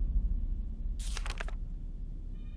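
A paper page turns with a quick rustle.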